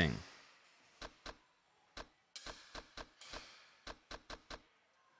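A menu cursor ticks with short clicks as it moves through a list.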